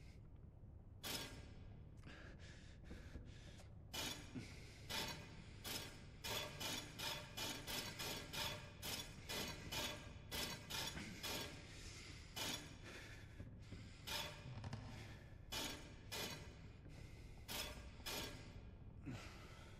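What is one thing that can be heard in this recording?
Metal rings turn with repeated sharp clicks and clanks.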